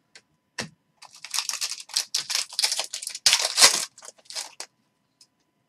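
A foil pack crinkles loudly as it is torn open.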